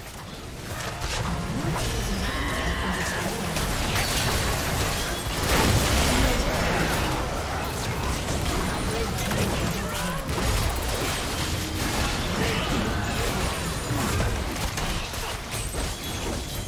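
Video game spell blasts and hits crackle and boom in a busy battle.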